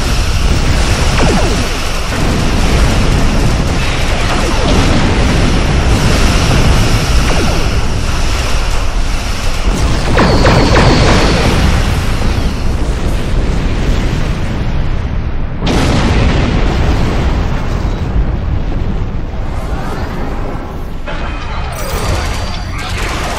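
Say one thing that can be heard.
A deep engine rumble drones steadily.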